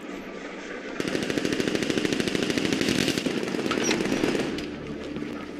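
A gun fires in rapid bursts close by.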